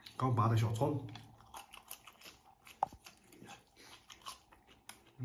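A man chews and smacks his lips.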